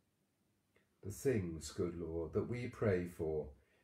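A man speaks calmly and slowly, close to the microphone.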